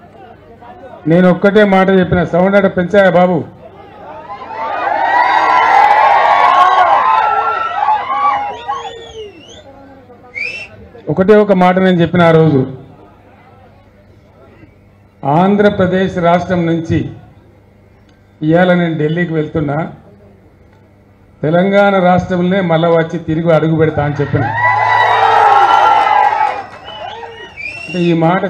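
An elderly man gives a speech loudly through a microphone and loudspeakers, in short bursts.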